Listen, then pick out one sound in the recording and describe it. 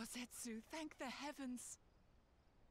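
A young woman speaks calmly and close.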